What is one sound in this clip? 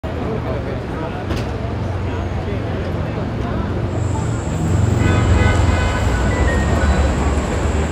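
A city street rumbles with busy traffic noise all around.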